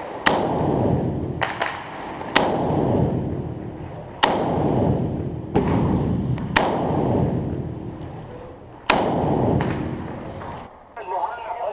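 A Kalashnikov-pattern assault rifle fires single shots, echoing inside a concrete building.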